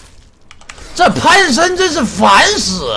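A young man speaks loudly and excitedly into a close microphone.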